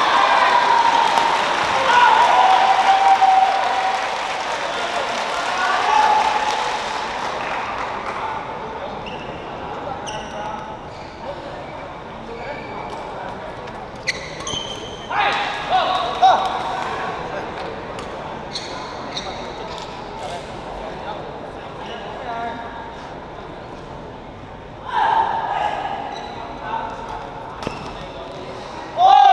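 Rackets strike a shuttlecock with sharp pops, echoing in a large hall.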